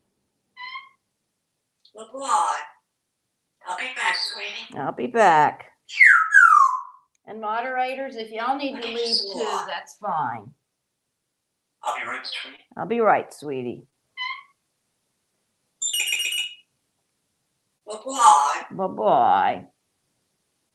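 A parrot talks and mimics voices in bursts, close by.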